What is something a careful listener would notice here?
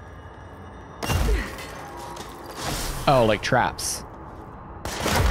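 Crystals burst and shatter with a crackling crash.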